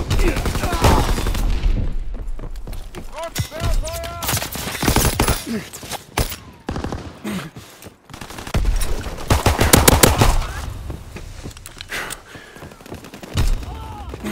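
Single pistol shots crack.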